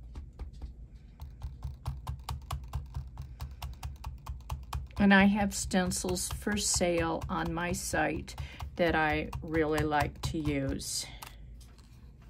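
A foam dauber taps quickly and rhythmically on paper.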